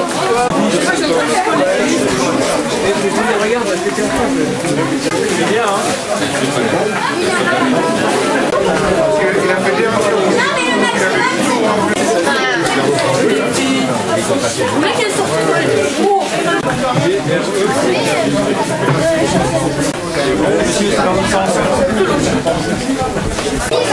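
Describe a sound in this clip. A crowd of men and women chatters nearby, outdoors.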